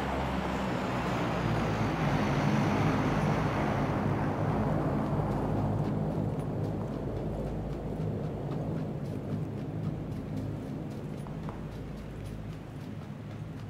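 Footsteps crunch softly through dry grass.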